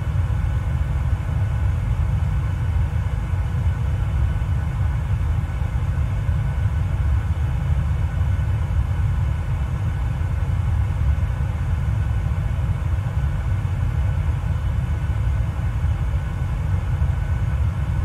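A jet airliner's engines drone with a steady low rumble.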